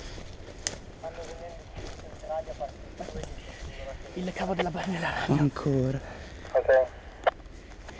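A man speaks in a low voice close by.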